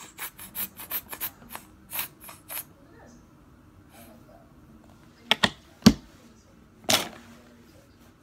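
Hands slap skin in quick, sharp pats.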